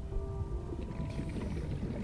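Bubbles gurgle and fizz underwater.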